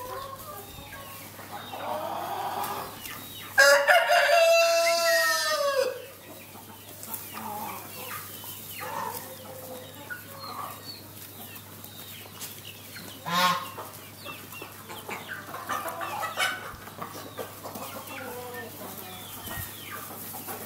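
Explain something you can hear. Chickens cluck and call.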